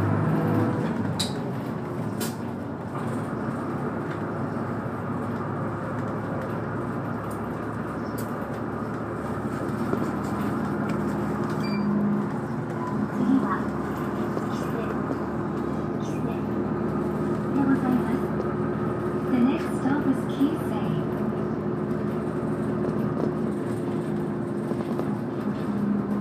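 A car engine hums steadily from inside a moving vehicle.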